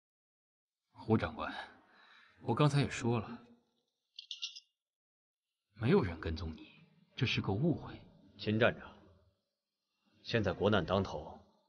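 A man speaks calmly and firmly nearby.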